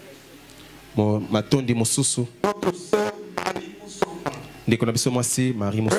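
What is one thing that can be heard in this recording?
A man speaks with animation into a microphone through loudspeakers in an echoing hall.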